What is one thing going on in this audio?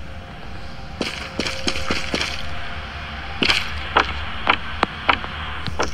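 Footsteps thud on a hard floor at a steady walking pace.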